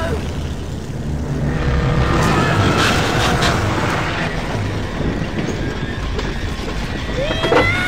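A car engine drones steadily.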